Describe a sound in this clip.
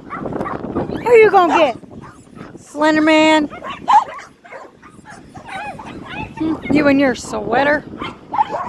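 A small dog barks and yelps close by.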